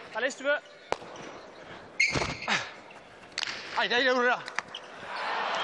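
A hard ball smacks sharply against a wall and echoes in a large hall.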